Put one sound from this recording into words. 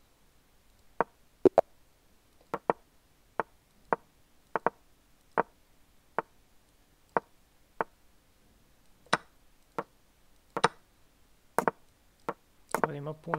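Sharp wooden clicks of chess pieces being placed come at an uneven pace.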